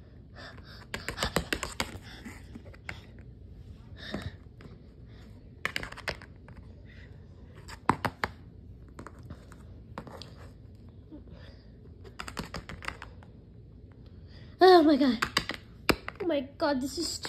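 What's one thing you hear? Small plastic toys tap and click on a hard floor.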